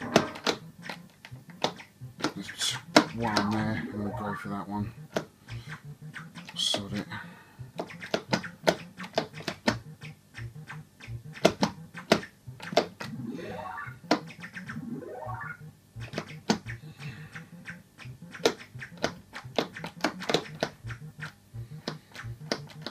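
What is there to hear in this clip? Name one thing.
Sharp electronic clicks and zaps sound quickly from an arcade game.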